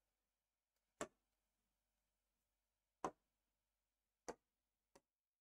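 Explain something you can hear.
A marker pen taps on a board.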